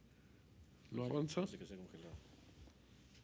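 A middle-aged man speaks briefly into a microphone.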